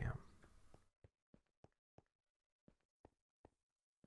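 Footsteps tap softly and evenly on a stone roof.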